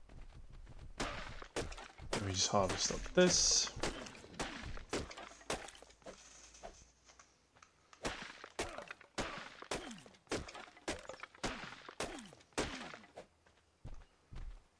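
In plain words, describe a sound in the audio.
A stone pick chops repeatedly into dry wood with hard knocks.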